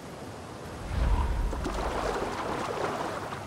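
Water splashes around a swimming person.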